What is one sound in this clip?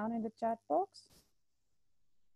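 A woman speaks briefly and clearly.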